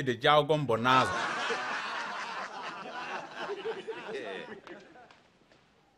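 Several men murmur and laugh together.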